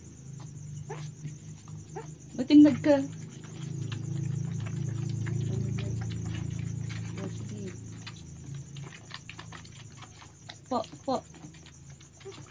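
Puppies suck and smack noisily at feeding bottles.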